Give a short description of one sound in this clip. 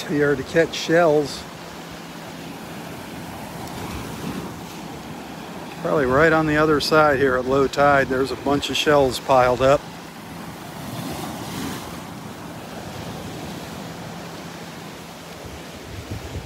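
Small waves splash and wash over roots at the water's edge.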